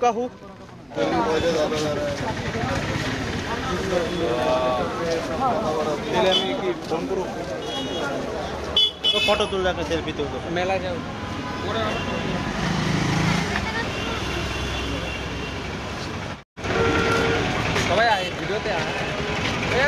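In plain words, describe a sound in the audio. Several young men talk nearby.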